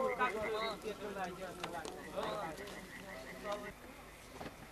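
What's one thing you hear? A group of men talk at a distance outdoors.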